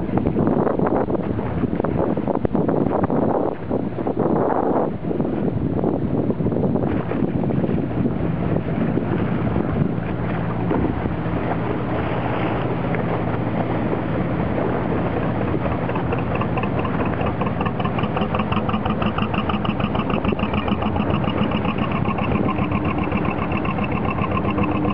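Water splashes and churns against a boat's hull.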